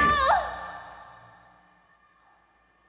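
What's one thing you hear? A young woman sings a high note into a microphone, ending in a long echo through a large hall.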